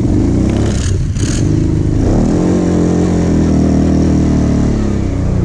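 A quad bike engine revs loudly close by.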